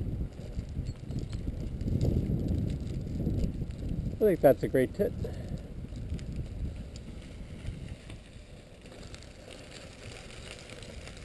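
Bicycle tyres crunch over a gravel track.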